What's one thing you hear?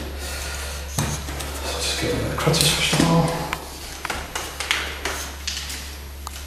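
A walking frame and crutches knock and clack on a wooden floor.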